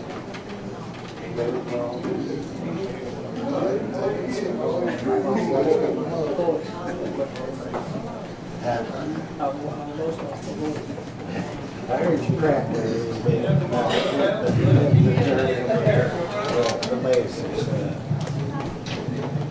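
Acoustic guitars strum along.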